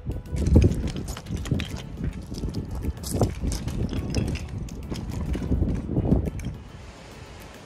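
Trekking poles click against stones.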